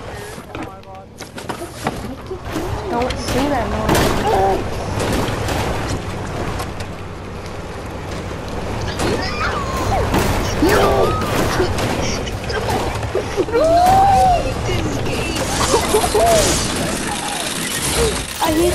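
A buggy engine hums and revs as the vehicle drives.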